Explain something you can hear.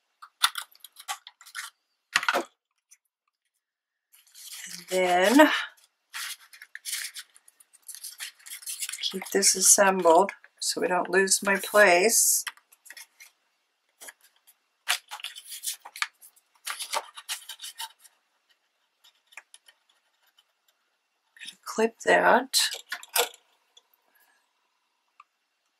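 Sheets of scrapbook paper rustle as they are folded and handled.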